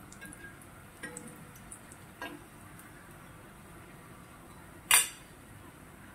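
A metal spatula scrapes and taps against an iron pan.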